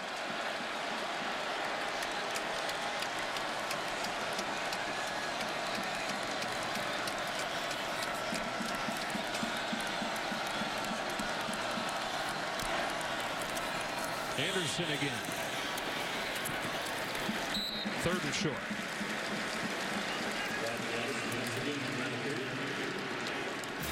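A large stadium crowd roars steadily throughout.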